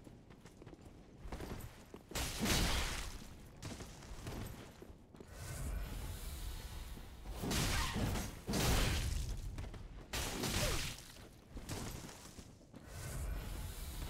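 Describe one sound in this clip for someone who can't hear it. Swords swing and clash in quick bursts.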